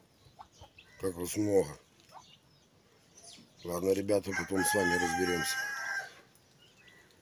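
Ducks quack and call nearby.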